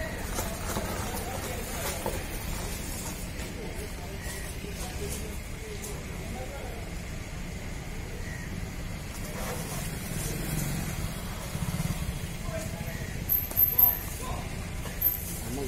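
Hooves scuff and scrape on a paved road.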